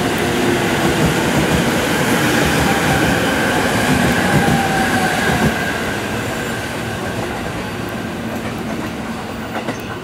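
A train rumbles and clatters loudly past close by, then fades.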